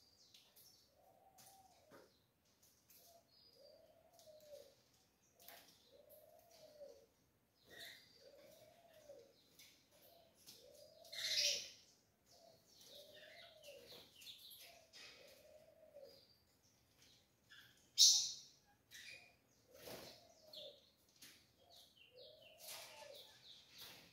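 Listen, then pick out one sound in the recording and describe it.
A small bird repeats a low, soft call at a steady pace.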